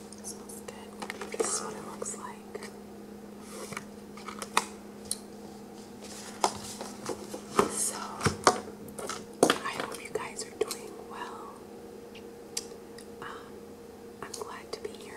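A young woman whispers softly, very close to a microphone.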